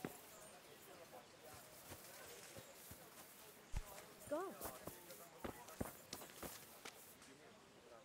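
Footsteps tread on grass and a dirt path.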